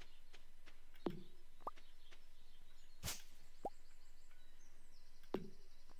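A blade swishes and thuds into leafy brush.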